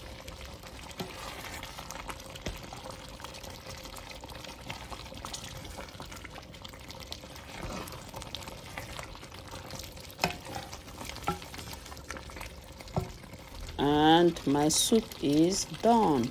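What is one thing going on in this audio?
A wooden spoon stirs and scrapes through a thick stew.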